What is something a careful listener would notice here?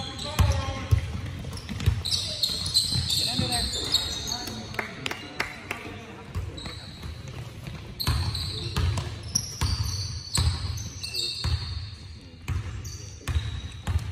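Basketballs bounce on a hard floor in a large echoing gym.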